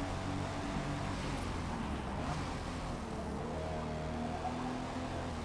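A car engine drops in pitch as the car slows for a corner.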